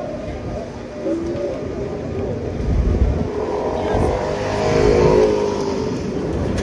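Street traffic rumbles outdoors.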